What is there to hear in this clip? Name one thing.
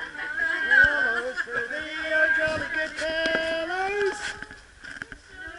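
A group of adults sing together nearby.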